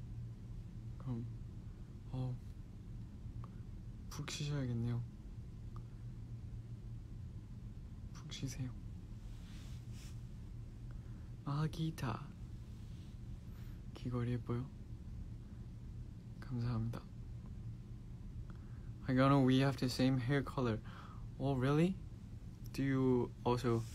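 A young man speaks softly and calmly into a nearby microphone, in short bursts with pauses.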